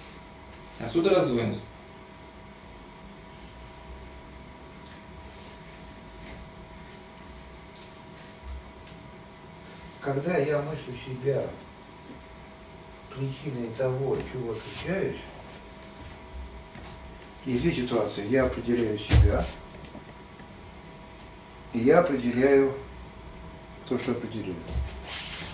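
An elderly man speaks in short phrases with pauses.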